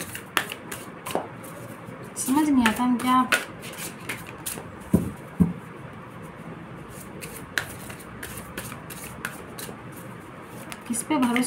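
Paper rustles and taps as it is handled.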